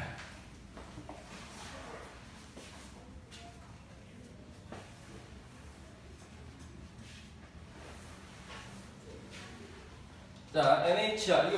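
A cloth eraser rubs and swishes across a chalkboard.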